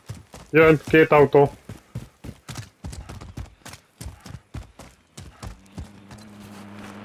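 Footsteps crunch quickly over gravel and rock.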